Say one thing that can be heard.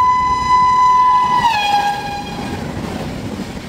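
A train horn blares loudly and drops in pitch as it passes.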